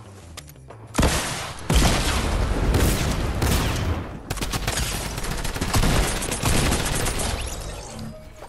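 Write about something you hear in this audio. Gunshots boom loudly in quick bursts.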